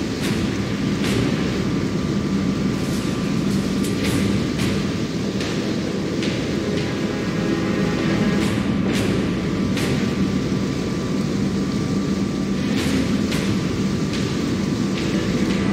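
Cannon fire booms in sharp bursts, again and again.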